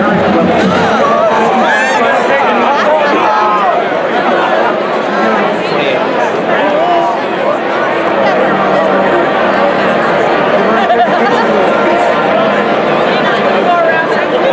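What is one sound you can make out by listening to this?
A marching band plays brass and drums on a field.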